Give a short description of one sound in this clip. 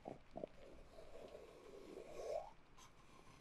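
A young woman makes a muffled hum through a gag, close to a microphone.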